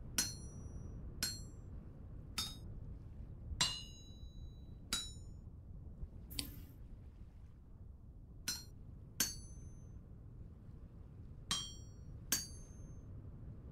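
A hammer strikes metal on an anvil with a bright ringing clang, again and again.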